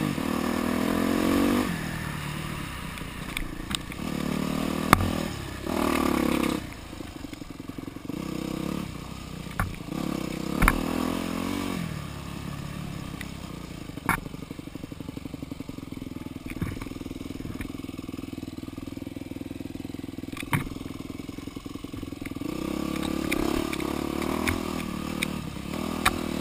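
A dirt bike engine revs and putters close by, rising and falling.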